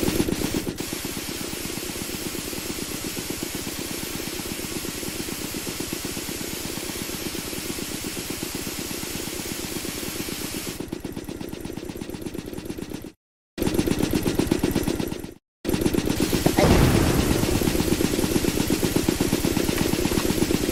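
A machine buzzes and rattles steadily.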